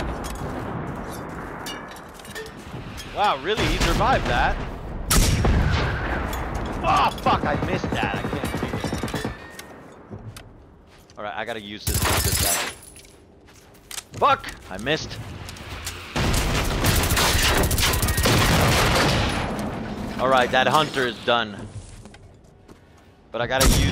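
A weapon is reloaded with metallic clicks.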